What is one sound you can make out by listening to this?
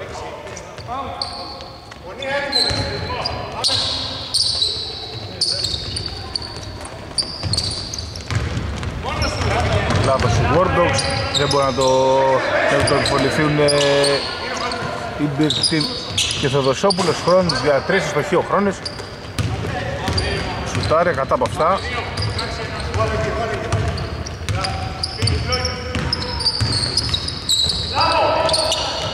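Sneakers squeak sharply on a hard court, echoing in a large empty hall.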